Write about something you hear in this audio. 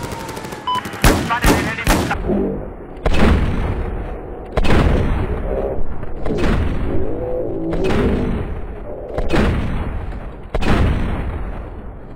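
Pistol shots ring out one at a time, with a heavy boom and echo after each.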